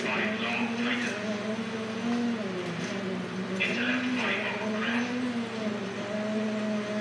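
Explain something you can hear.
A rally car engine revs and drones steadily, rising and falling in pitch.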